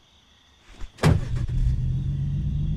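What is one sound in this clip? A pickup truck engine starts.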